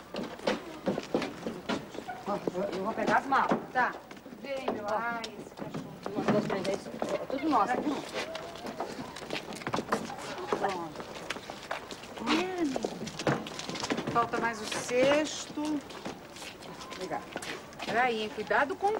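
Men and women chatter and call out close by outdoors.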